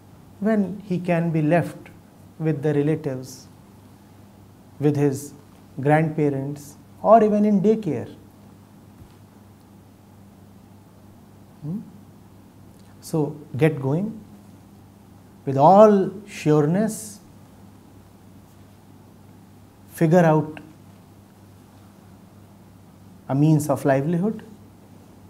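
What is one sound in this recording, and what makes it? A man speaks calmly into a close microphone, pausing often.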